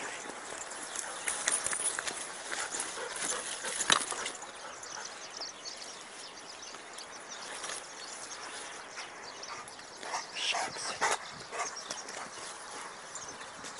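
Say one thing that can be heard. A dog runs through rustling grass.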